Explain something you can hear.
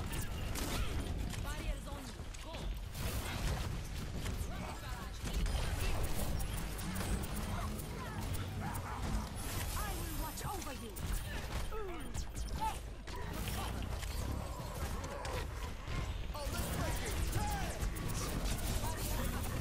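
Rapid energy gunfire crackles and blasts.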